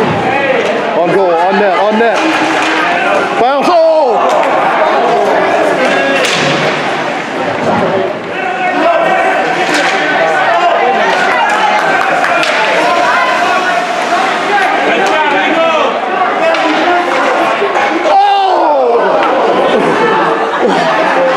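A crowd of spectators chatters and calls out nearby in a large echoing hall.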